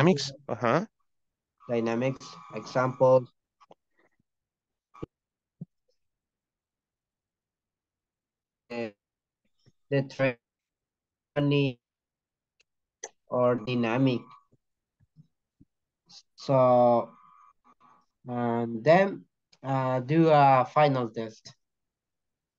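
A young man speaks calmly into a microphone, in short bursts with pauses.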